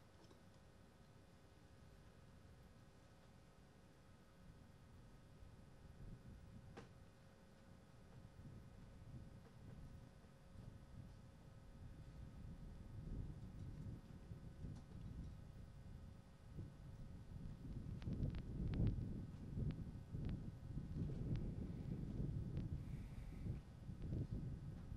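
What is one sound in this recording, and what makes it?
Wind blows and buffets outdoors, growing stronger.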